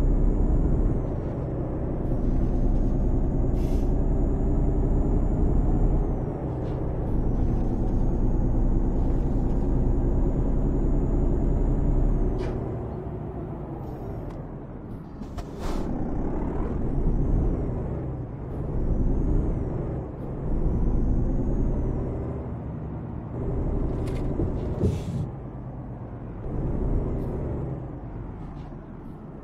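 A simulated diesel truck engine drones as the truck drives along.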